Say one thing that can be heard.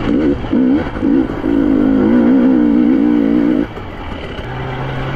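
A dirt bike engine revs hard, rising and falling in pitch.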